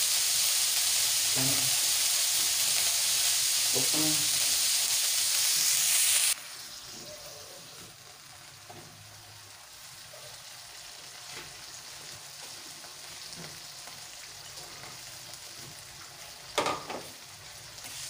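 Food sizzles loudly in a hot pan, then quiets to a soft simmer.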